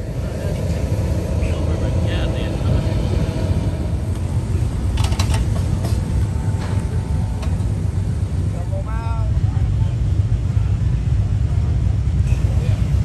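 Voices of a crowd murmur in the distance.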